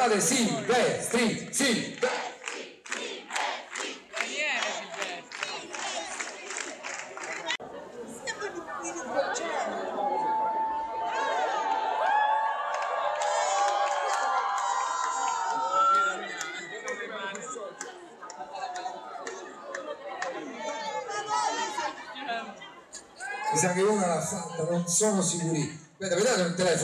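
A live band plays loudly in a large hall.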